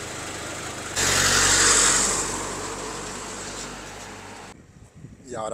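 A vehicle engine roars as it drives off.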